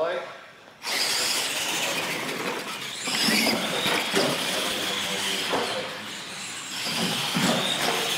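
Small electric motors whine as toy trucks race.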